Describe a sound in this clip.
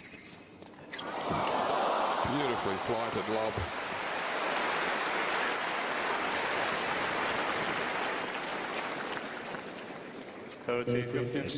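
A large crowd applauds and cheers in an open stadium.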